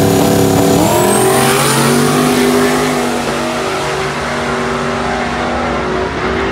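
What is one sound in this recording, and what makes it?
A race car's engine revs up and roars away.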